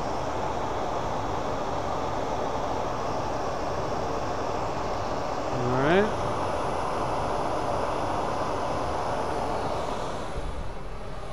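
A lathe whirs steadily.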